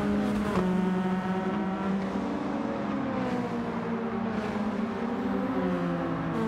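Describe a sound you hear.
A racing car engine roars steadily, shifting pitch as it shifts gears.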